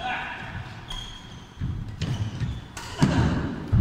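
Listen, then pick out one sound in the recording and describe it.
A shuttlecock is struck sharply with a racket in a large echoing hall.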